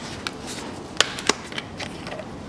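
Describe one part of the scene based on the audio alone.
A plastic bottle cap clicks open.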